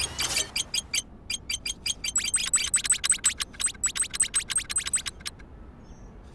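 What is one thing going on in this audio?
Coins clink rapidly in quick succession.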